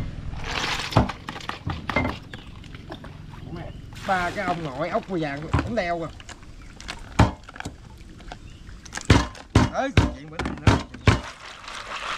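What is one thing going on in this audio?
A knife chops on a wooden board with sharp knocks.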